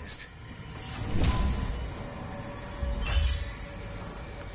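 Heavy metal footsteps thud.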